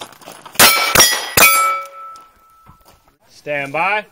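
Steel targets ring out after being hit.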